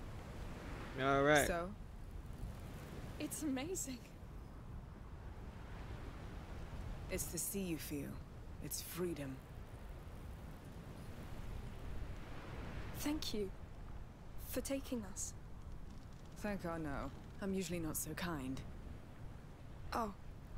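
A young woman speaks calmly and warmly.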